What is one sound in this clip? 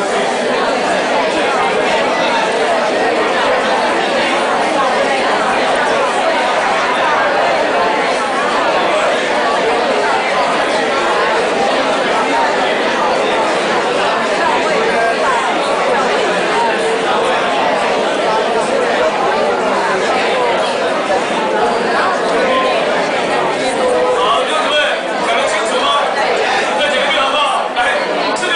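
Many people murmur and chatter in a crowded room.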